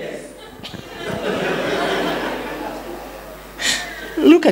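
An audience laughs together.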